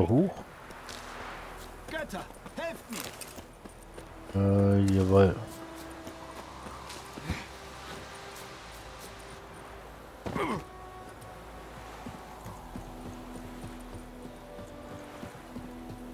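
Footsteps run over a dirt path.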